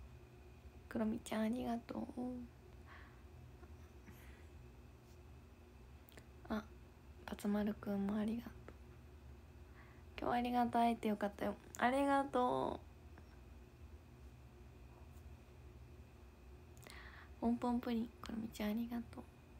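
A young woman speaks calmly and softly in short bursts, close to a microphone.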